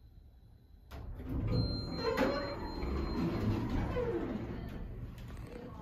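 Elevator doors slide open with a rumble.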